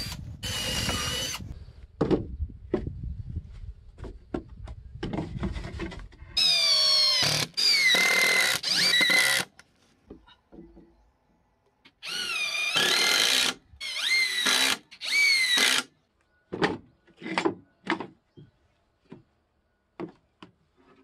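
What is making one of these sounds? Wooden boards knock and clatter against each other.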